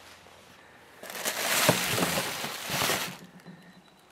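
A plastic bag rustles and crinkles as hands dig through a box.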